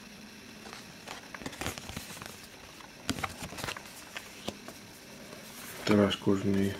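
Stiff paper cards rustle and slide as they are handled.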